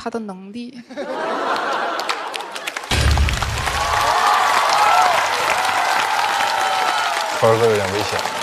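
A large audience laughs and cheers.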